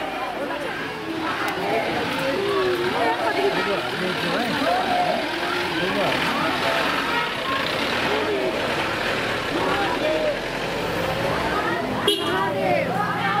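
A crowd of men and women chants and sings loudly nearby.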